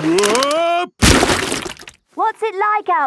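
Something lands with a heavy, wet splash in mud.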